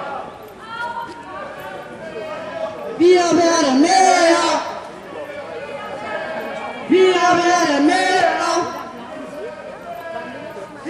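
A crowd of men and women sings together outdoors, swelling loud in two bursts.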